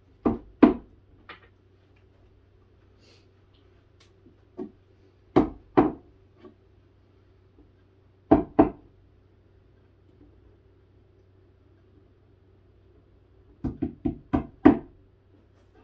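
Wooden panels knock and thud sharply as a shelf is put together.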